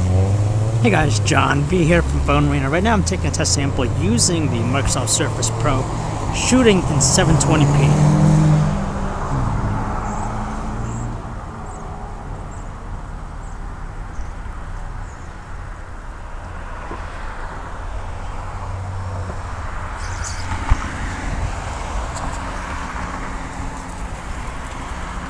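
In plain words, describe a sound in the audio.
Cars drive past on a nearby road outdoors.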